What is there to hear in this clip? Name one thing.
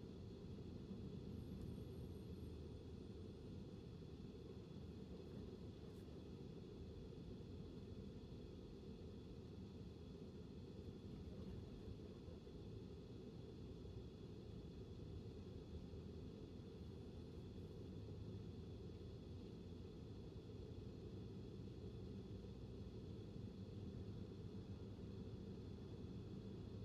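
A car drives steadily along a road, with a low engine and tyre rumble heard from inside.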